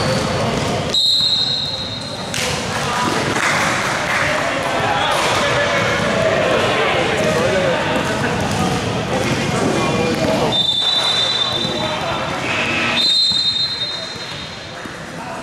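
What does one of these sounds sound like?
A referee's whistle blows sharply a few times in an echoing hall.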